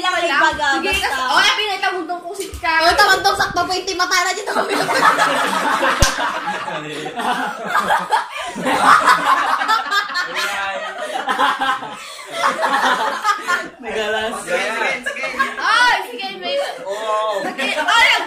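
A teenage boy laughs and talks with animation close by.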